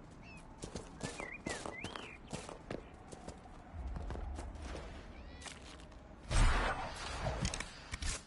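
Magic crackles and zaps.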